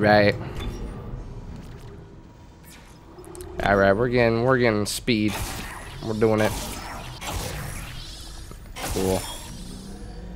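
Electronic menu tones chime and beep.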